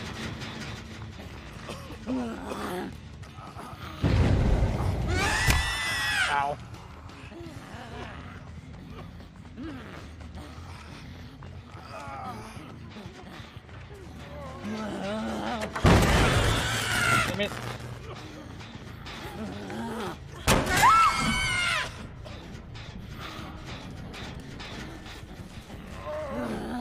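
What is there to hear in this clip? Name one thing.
A young man talks excitedly into a close microphone, now and then shouting loudly.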